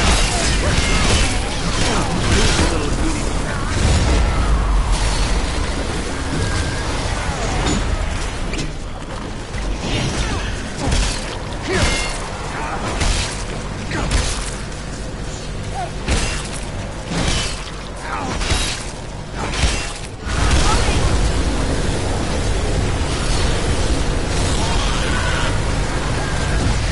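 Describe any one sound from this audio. Energy beams crackle and roar in a loud fight.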